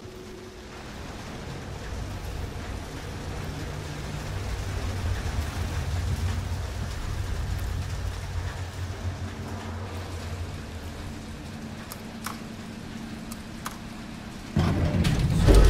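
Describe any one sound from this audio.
An elevator hums and rumbles as it rises.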